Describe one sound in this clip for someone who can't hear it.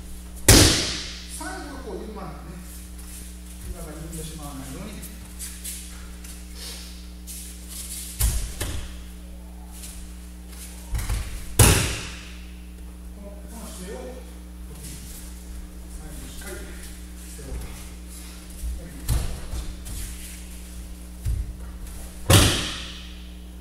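A body slams hard onto a mat, echoing in a large hall.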